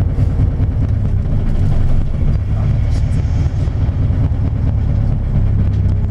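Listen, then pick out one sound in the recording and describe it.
A truck passes close by.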